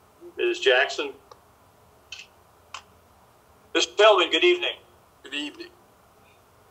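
Voices speak in short bursts over an online call.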